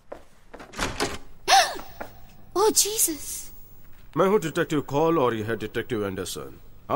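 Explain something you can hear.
A man speaks urgently and close by.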